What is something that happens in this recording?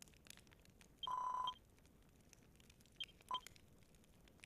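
A short electronic chime beeps as a message advances.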